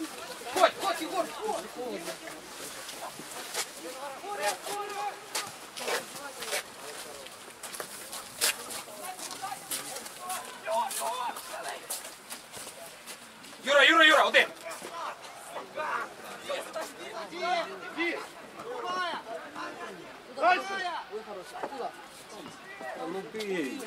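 Young men shout and call to each other across an open outdoor field.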